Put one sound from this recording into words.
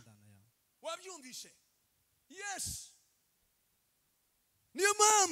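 A young man speaks with animation into a microphone, heard through loudspeakers in an echoing hall.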